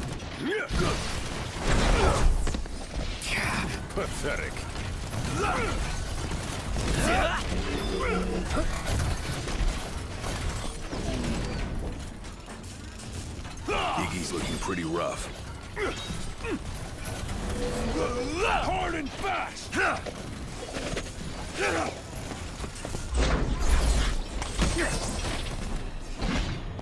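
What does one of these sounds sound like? Young men shout and grunt while fighting.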